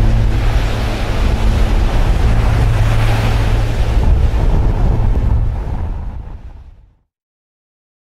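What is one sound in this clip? Waves wash against rocks along the shore.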